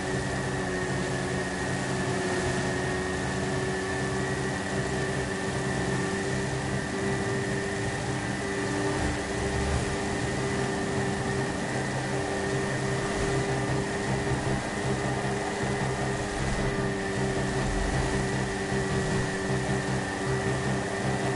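A motorcycle engine drones steadily at speed.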